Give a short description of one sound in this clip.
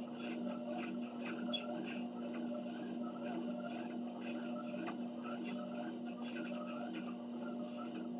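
Footsteps thud rhythmically on a treadmill belt.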